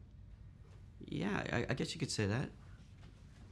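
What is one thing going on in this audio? A second man answers briefly and calmly.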